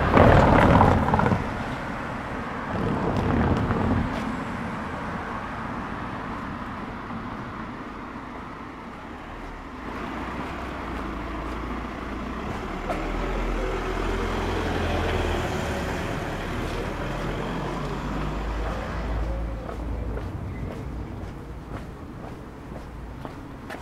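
Traffic hums faintly in the distance outdoors.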